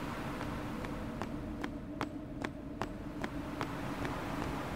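A large bird's feet patter quickly on stone.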